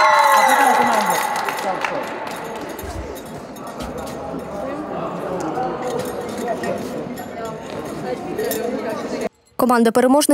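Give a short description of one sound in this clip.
People murmur and talk in a large echoing hall.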